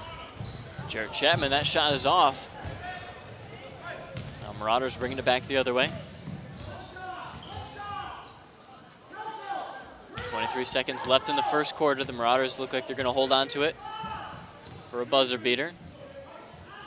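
Sneakers squeak sharply on a wooden gym floor.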